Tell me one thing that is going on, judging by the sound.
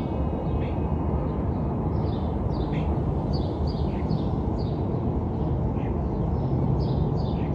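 Small birds chirp in short, high bursts outdoors.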